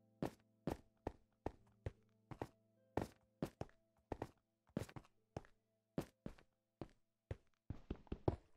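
Footsteps crunch on grass and gravel at a steady pace.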